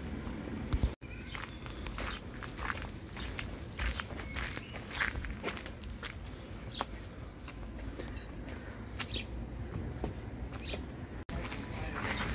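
Footsteps climb stone steps outdoors.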